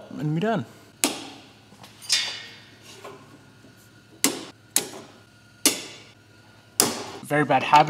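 Metal tubing clicks and clanks against a car's underside.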